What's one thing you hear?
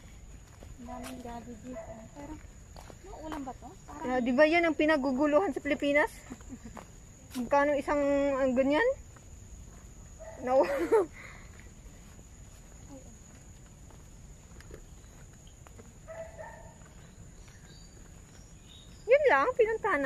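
A young woman talks close by with animation, muffled through a face mask.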